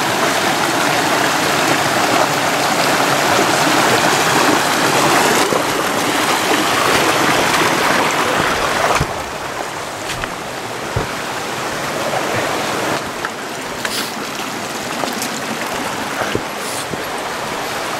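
A river rushes nearby.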